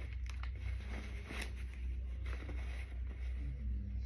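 Paper wrapping crinkles.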